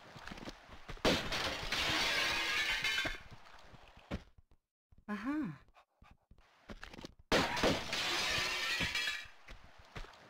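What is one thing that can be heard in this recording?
Glass shatters loudly.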